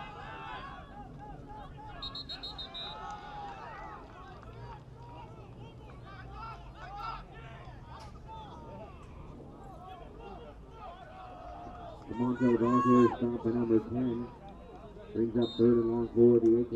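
Many people chatter and call out outdoors.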